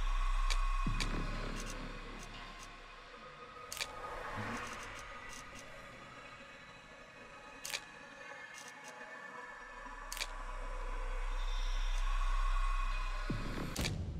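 Short electronic clicks tick now and then.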